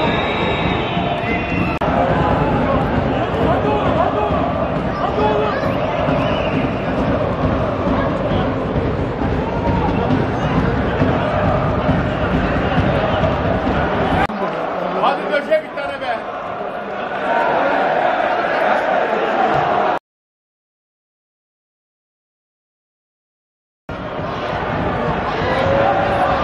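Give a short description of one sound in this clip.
A large crowd chants and cheers in an open stadium.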